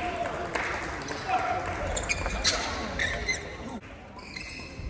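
Men call out and chatter in the echoing hall.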